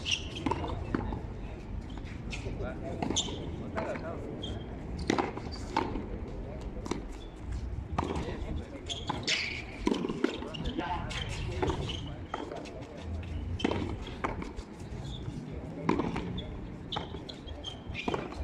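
A hard ball slaps off bare hands and smacks against a concrete wall in a hand frontón rally.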